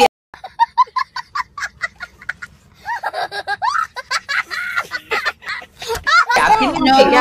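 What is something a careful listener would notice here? A young boy laughs excitedly close by.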